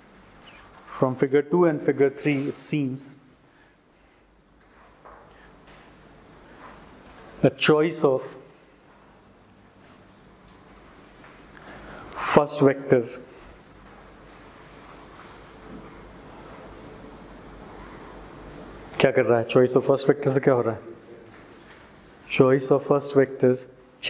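A man speaks calmly into a clip-on microphone, lecturing in bursts with pauses.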